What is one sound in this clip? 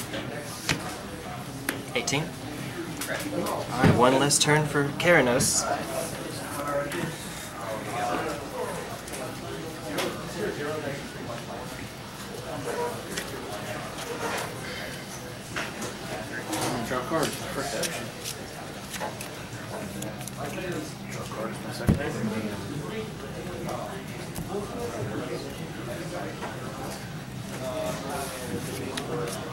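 Men talk casually across a table nearby.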